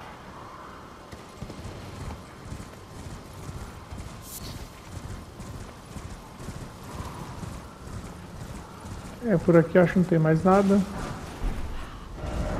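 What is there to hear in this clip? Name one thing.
Hooves thud in a quick, steady gallop on soft ground.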